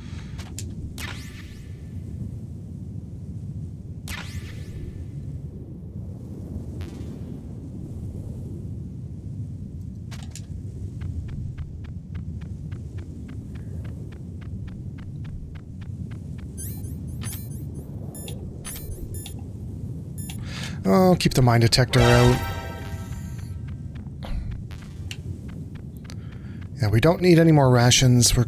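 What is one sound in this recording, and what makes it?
A short electronic chime sounds as an item is picked up.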